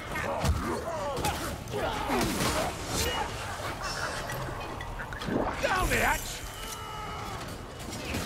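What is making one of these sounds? Heavy blows strike and slash into a foe.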